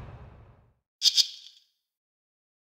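Two quick sparkling chimes ring out.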